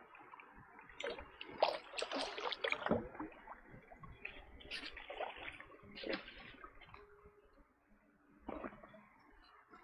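Water splashes and sloshes nearby.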